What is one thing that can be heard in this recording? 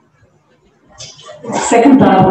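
A woman speaks through a microphone in an echoing hall.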